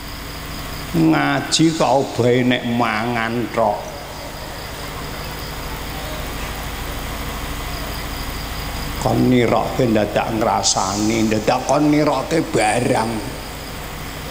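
An elderly man sings into a microphone over a loudspeaker.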